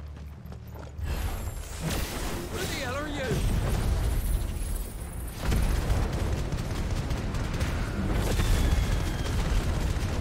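Fiery magic blasts roar and crackle loudly.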